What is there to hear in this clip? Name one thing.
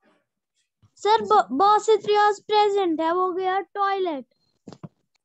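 A young girl chants in a melodic voice close by.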